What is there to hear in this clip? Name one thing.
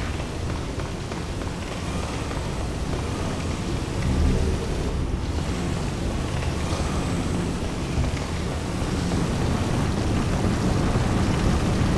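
Footsteps run over stone.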